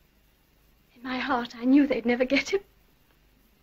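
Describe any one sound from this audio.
A young woman speaks briefly with surprise.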